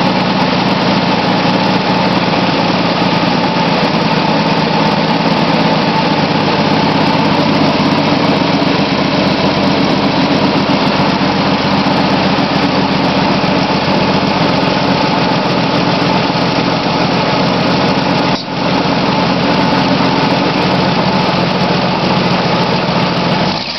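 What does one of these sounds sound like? A car engine idles steadily and loudly close by.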